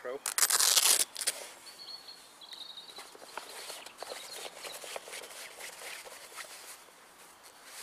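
A man rustles and flaps stiff canvas fabric.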